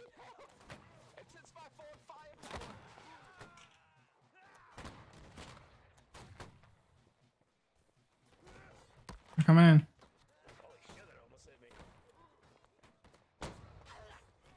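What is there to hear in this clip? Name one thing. Muskets fire in sharp cracks.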